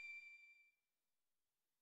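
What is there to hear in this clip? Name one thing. A short bright game chime rings and quickly fades.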